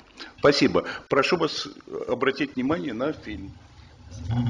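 A man speaks calmly into a microphone in a slightly echoing room.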